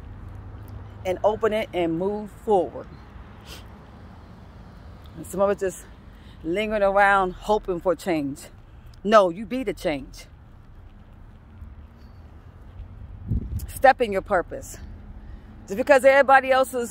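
A middle-aged woman talks close up in short bursts with animation, outdoors.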